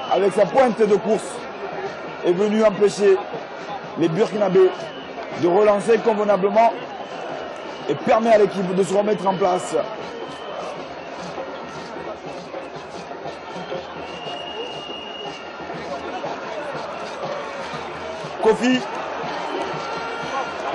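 A large stadium crowd murmurs and cheers steadily in the open air.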